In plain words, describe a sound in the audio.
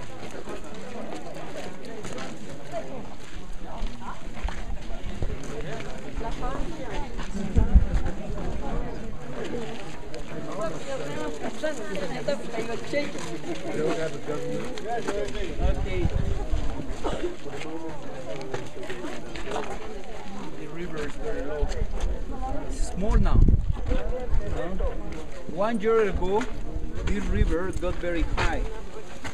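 A man speaks calmly to a group outdoors, close by.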